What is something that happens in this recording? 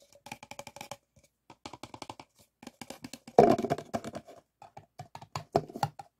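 Paper cups rustle and tap as they are handled.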